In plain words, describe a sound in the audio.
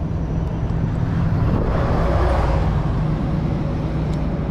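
A car passes on a nearby road.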